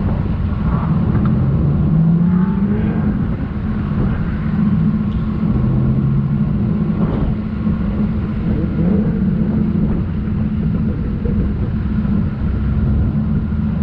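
An engine rumbles as a vehicle rolls slowly over sand.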